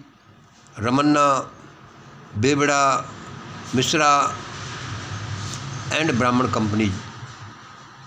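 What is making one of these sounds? An elderly man speaks close to a phone's microphone, in short, drawn-out phrases.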